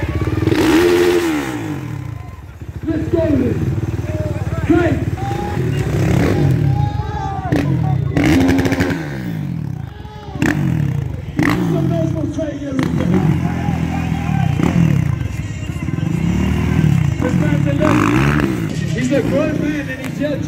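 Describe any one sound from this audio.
Motorcycle engines idle and rev loudly close by, rising and falling in pitch.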